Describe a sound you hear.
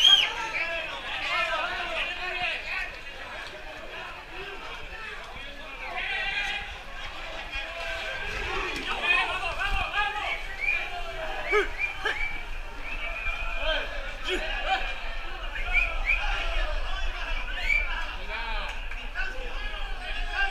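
A crowd of men and women shouts and cheers excitedly outdoors.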